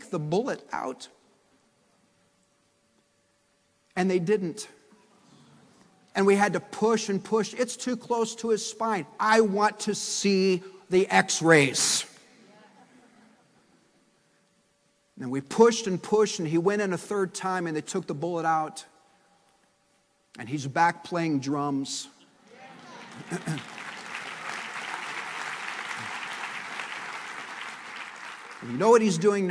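A middle-aged man speaks with animation into a microphone, pausing between phrases.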